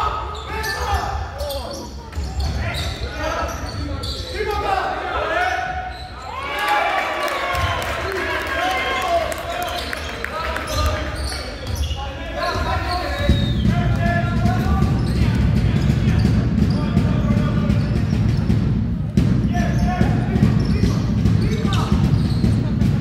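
Men shout and call out during play, echoing in a large hall.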